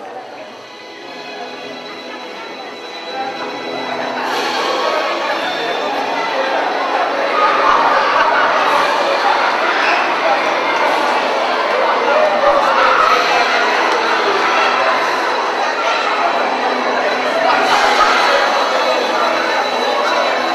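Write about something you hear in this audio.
A crowd of children and adults murmurs in a large echoing hall.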